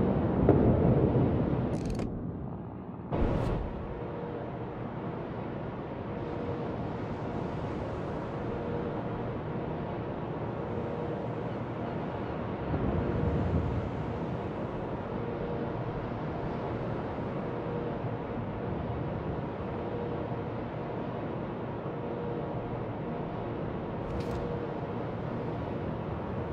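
Waves wash and splash against a ship's hull.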